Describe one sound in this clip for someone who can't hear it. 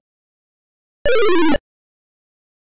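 A short electronic tone slides downward.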